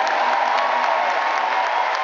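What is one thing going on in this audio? A woman sings into a microphone over loud amplified music.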